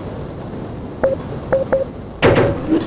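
A scanner gives a few short electronic beeps.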